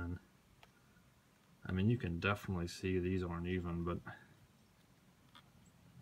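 Fingers handle a small metal connector with faint clicks.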